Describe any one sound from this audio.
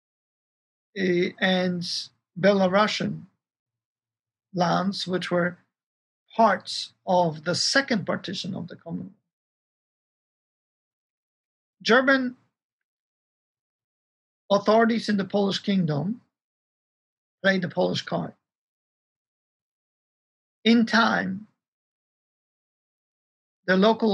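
A middle-aged man speaks calmly over an online call, pausing between phrases.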